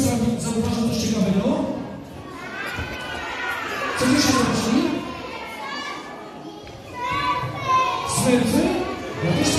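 A man speaks with animation into a microphone, heard through loudspeakers in a large echoing hall.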